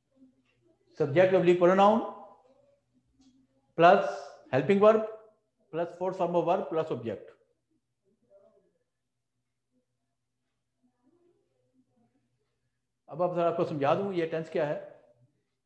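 A middle-aged man speaks calmly in short phrases, close by, with pauses between them.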